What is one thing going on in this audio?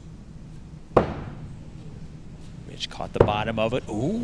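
An axe thuds sharply into a wooden target.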